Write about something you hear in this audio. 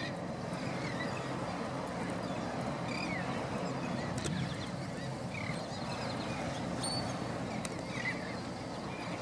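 A seabird calls now and then.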